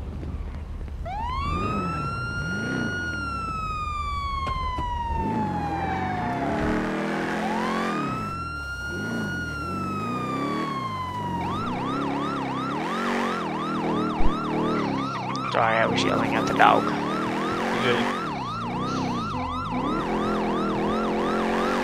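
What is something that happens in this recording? An ambulance siren wails in long rising and falling sweeps, then switches to a rapid yelp.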